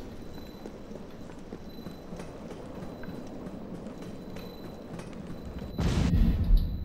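Footsteps clank steadily on a metal walkway.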